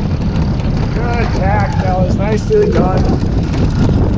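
A man calls out loudly over the wind.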